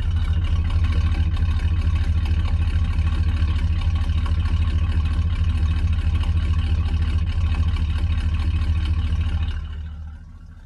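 An engine idles with a deep, throbbing rumble through the exhaust, then fades.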